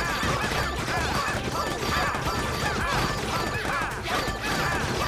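Cartoon paint blobs splat and squirt rapidly.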